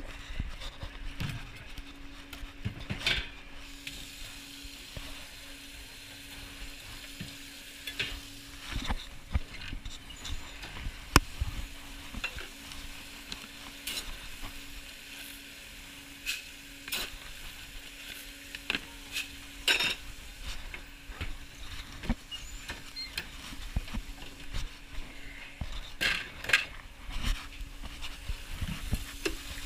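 Metal kitchenware clinks and clatters close by.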